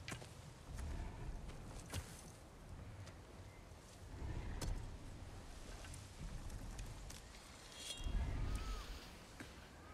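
A huge boar breathes with slow, deep, rumbling snorts.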